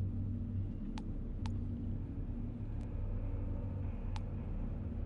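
Short soft menu clicks sound as a selection moves from item to item.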